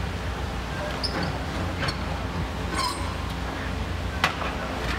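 Metal scrap clanks and bangs as a demolition claw tears at a building.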